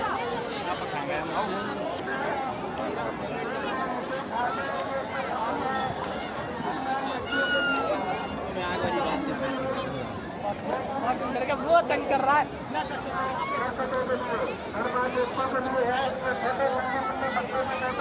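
A large outdoor crowd chatters and shouts all around.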